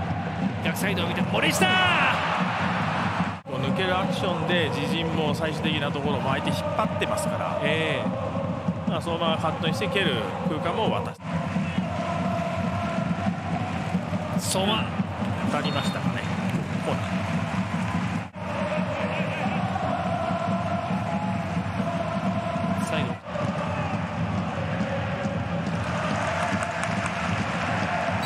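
A large stadium crowd chants and cheers.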